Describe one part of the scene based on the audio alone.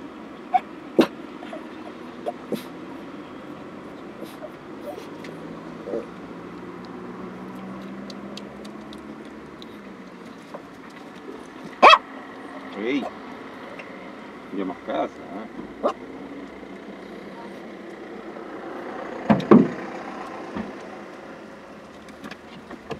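A car engine idles steadily, heard from inside the car.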